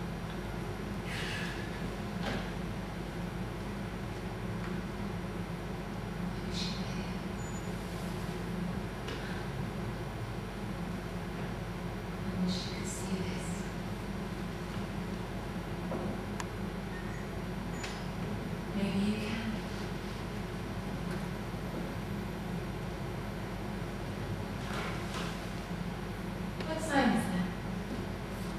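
A man speaks now and then into a microphone.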